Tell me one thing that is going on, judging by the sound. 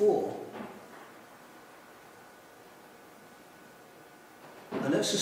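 An elderly man speaks calmly and thoughtfully into a nearby microphone, pausing between phrases.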